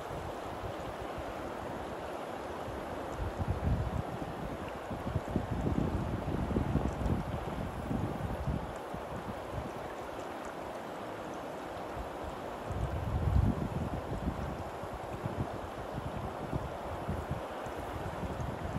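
A fast river rushes and splashes steadily close by.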